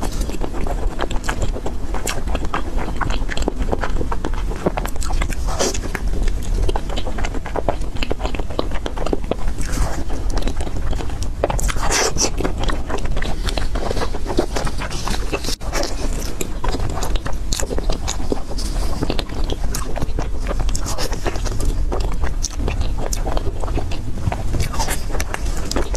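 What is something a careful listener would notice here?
A woman chews soft, sticky food close to a microphone with wet smacking sounds.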